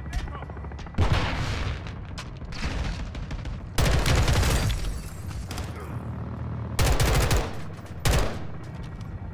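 Rapid gunshots ring out in bursts.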